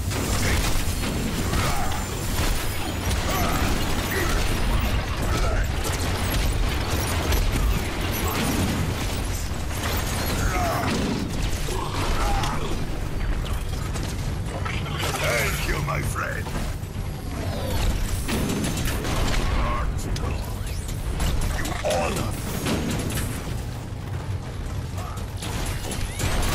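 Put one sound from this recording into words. Game gunfire and explosions crackle and boom continuously.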